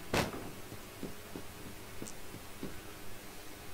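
Footsteps thud quickly across a wooden floor.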